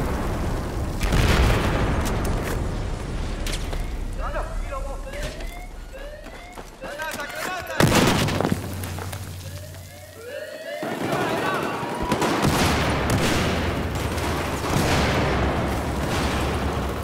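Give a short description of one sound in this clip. Explosions boom loudly and rumble.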